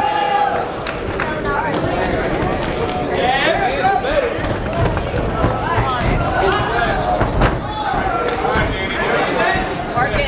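A crowd of spectators shouts and cheers in a large indoor hall.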